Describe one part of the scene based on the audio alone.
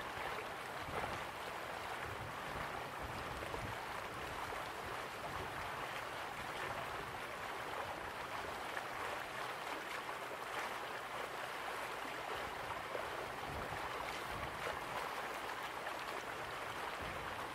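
A waterfall splashes steadily into a pool.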